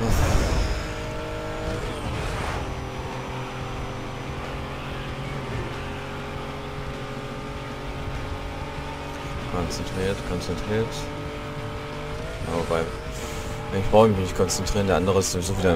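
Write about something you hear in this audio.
A racing car engine roars at high revs and shifts gears.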